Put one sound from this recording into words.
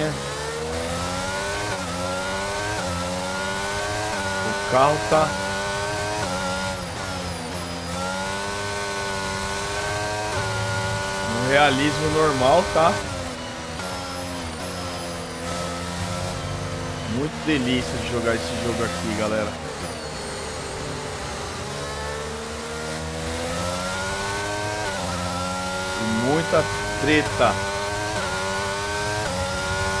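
A racing car engine screams, rising and falling in pitch.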